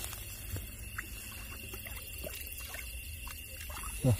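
Bare feet step on muddy ground.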